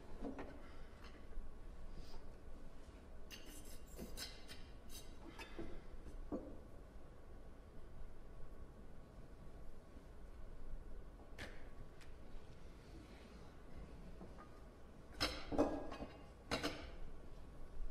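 Metal cans and glasses clink on a table.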